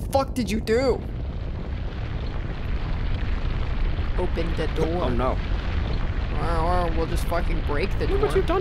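Walls crack apart and crumble with a low, steady rumble.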